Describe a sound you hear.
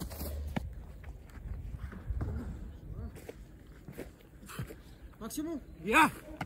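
A goalkeeper catches a football with a slap of gloves.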